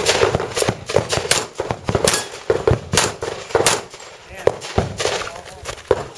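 A handgun fires rapid shots outdoors, each crack echoing off a nearby earth bank.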